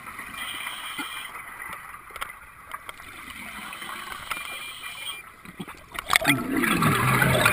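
Air bubbles gurgle and crackle underwater from a diver's breathing.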